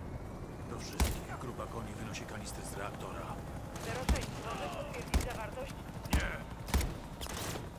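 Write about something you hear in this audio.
Gunshots ring out one at a time.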